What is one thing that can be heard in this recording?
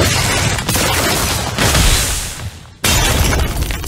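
An icy magic blast whooshes and crackles.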